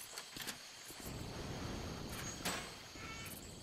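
A metal gate swings open.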